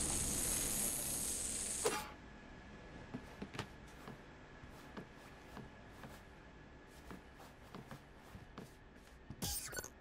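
Light footsteps patter quickly across a hard roof.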